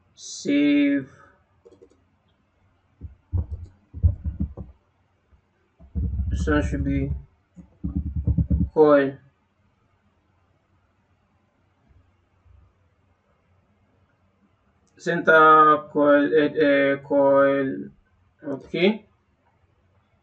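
A man talks calmly and closely into a microphone.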